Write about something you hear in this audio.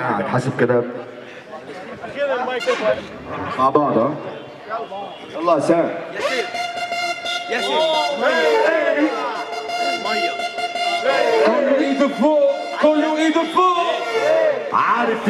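A man raps rapidly into a microphone through loudspeakers.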